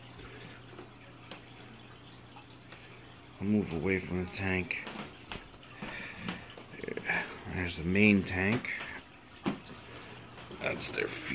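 An aquarium filter hums steadily.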